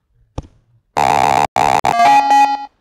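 Short electronic game tones beep in quick bursts.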